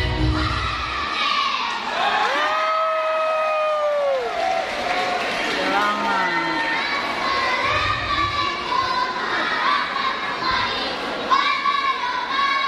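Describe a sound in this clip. A large crowd of women cheers and chatters loudly.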